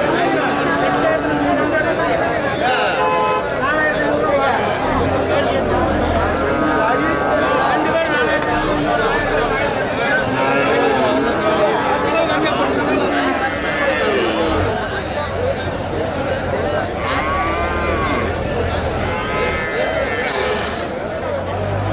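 A large crowd of men chatters loudly outdoors.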